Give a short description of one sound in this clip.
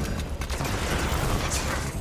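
A heavy melee blow thuds.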